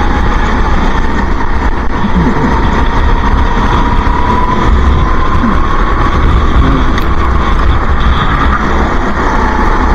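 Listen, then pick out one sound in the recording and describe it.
A small kart engine roars loudly close by, its pitch rising and falling.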